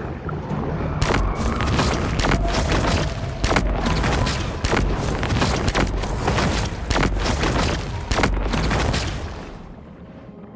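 Electric bolts crackle and zap loudly underwater.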